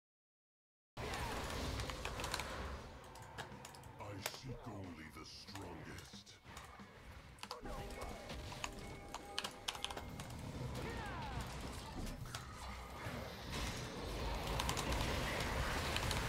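Fantasy battle sound effects whoosh and clash.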